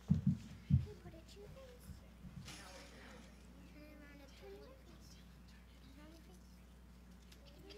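Young children speak softly nearby.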